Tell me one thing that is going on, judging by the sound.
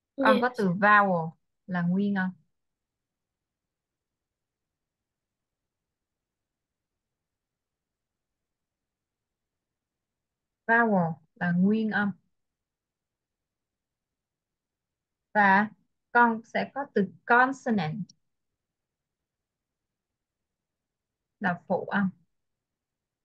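A young woman speaks calmly in short bursts over an online call.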